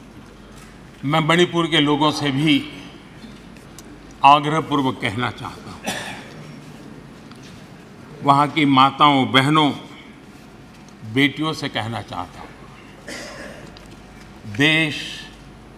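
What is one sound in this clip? An elderly man speaks slowly and firmly into a microphone, in bursts with pauses.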